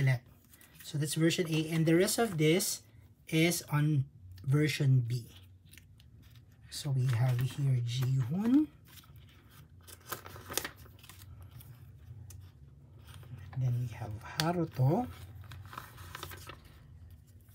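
Plastic sleeves crinkle and rustle as cards are handled.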